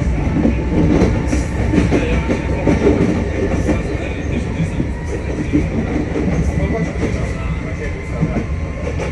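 Train wheels rumble and clatter steadily along the rails.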